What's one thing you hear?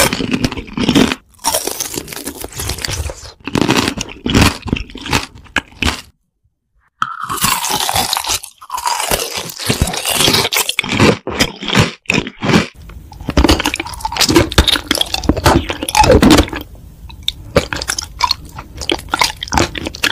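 Lips smack and make wet mouth sounds close up.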